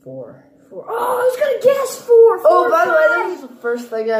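A young boy shouts excitedly.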